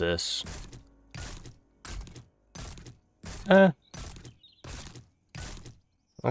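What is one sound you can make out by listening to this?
An axe chops repeatedly at a plant.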